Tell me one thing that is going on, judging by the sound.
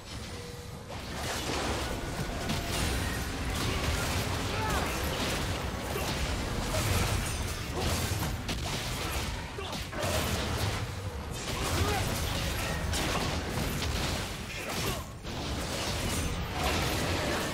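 Game spell effects and attacks crackle and burst in a fast fight.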